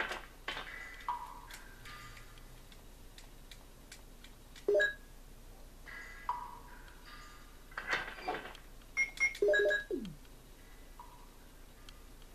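Short electronic chimes sound.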